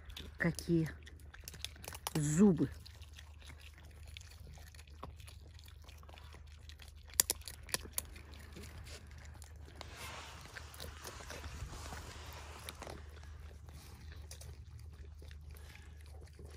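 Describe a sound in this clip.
A raccoon crunches and chews food up close.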